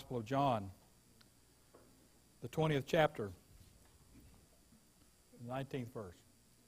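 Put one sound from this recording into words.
An elderly man preaches slowly and with emphasis into a microphone.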